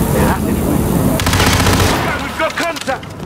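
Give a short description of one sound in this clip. A rifle fires a rapid burst of loud gunshots.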